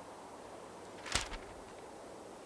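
A sheet of paper rustles as a note is opened.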